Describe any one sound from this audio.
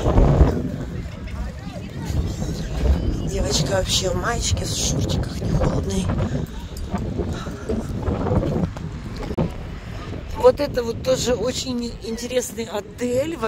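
Wind blusters outdoors.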